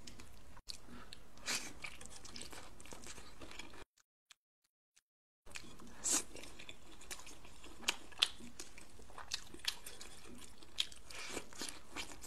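A woman chews and slurps food loudly and close up.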